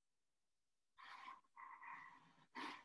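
A pen scratches lightly on paper.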